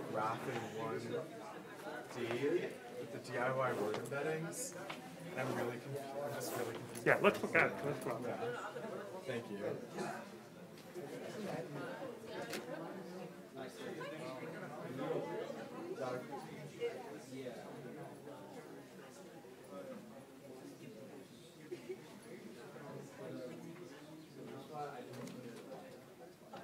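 A young man talks quietly in a large, echoing hall.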